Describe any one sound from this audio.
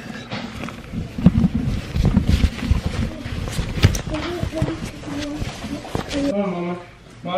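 Fabric rubs and rustles against a microphone.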